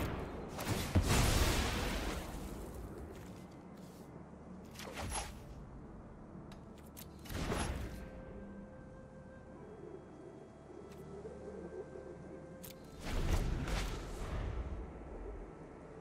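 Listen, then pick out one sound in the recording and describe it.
Game sound effects whoosh and chime in short bursts.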